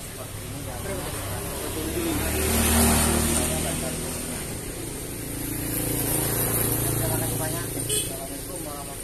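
A motor scooter rides close by.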